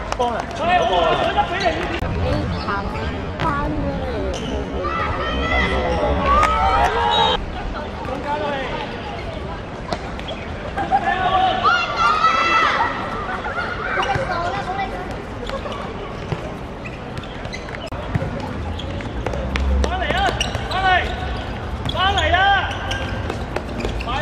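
Young girls shout and call out excitedly outdoors.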